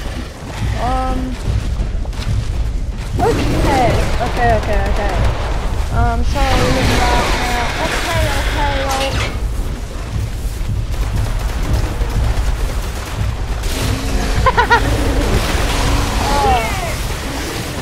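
A small dinosaur chirps and squeals in short high calls.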